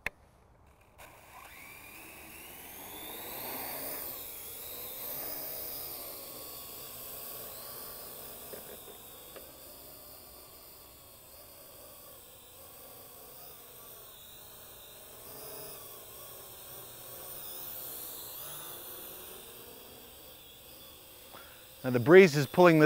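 A drone's propellers whir steadily with a high buzz.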